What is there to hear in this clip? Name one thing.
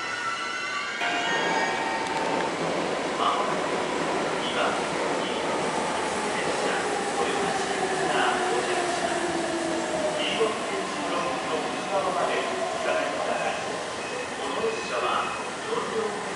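An electric train rolls in with clattering wheels and squealing brakes.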